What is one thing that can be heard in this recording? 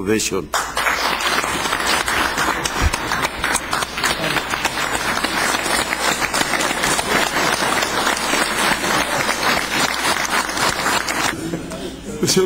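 A group of people applaud steadily.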